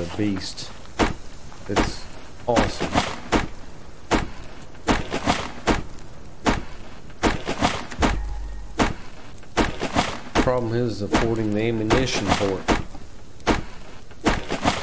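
An axe chops into a tree trunk with repeated hard thuds.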